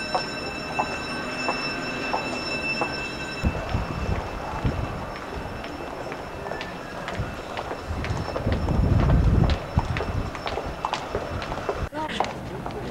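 Footsteps and voices bustle along a busy street.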